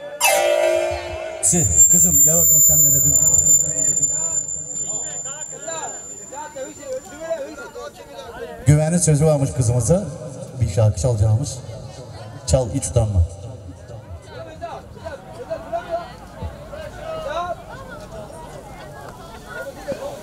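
Music plays loudly through outdoor loudspeakers.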